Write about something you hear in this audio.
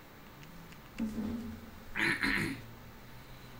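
A young man speaks briefly and casually, close to a microphone.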